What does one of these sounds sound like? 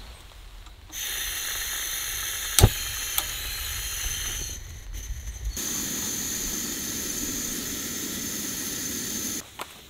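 A gas camping stove burner hisses and roars steadily.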